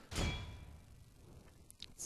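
Muskets fire in a battle.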